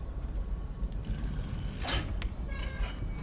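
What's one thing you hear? A combination lock clicks as its dial turns.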